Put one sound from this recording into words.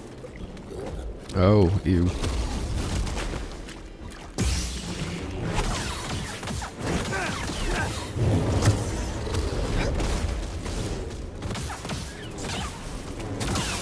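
A large beast growls and snarls.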